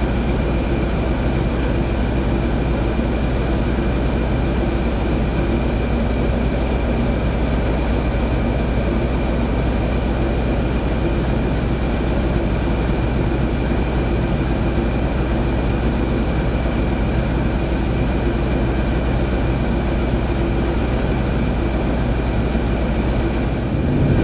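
A diesel locomotive engine idles with a loud, steady rumble that echoes in a tunnel.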